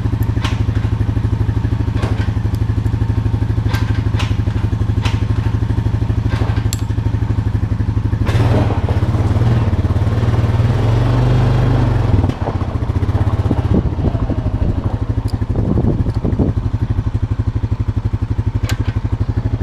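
A quad bike engine idles with a steady, throbbing chug.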